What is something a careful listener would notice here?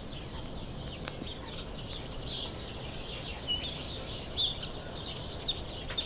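A squirrel nibbles on a seed with faint crunching.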